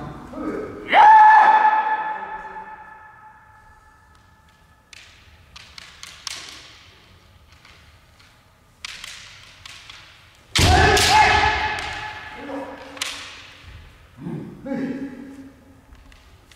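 A kendo fighter lets out a loud, ringing shout that echoes around a large hall.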